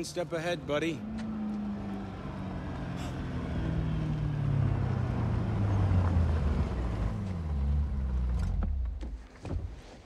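A sports car engine rumbles low nearby.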